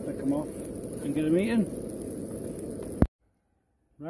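Sausages sizzle in a hot frying pan.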